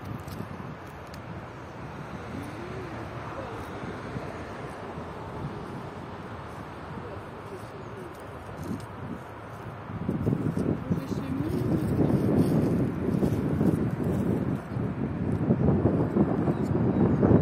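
A cow tears and chews grass close by.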